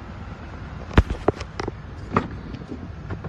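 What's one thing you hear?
A car door latch clicks and the door opens with a thud.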